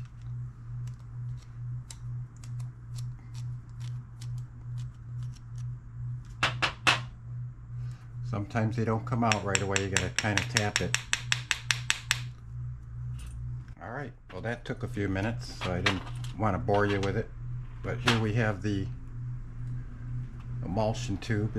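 Small metal parts click and tap against a tray.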